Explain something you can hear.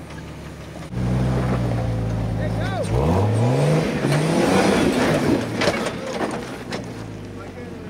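An off-road vehicle's engine revs loudly as the vehicle climbs over rock.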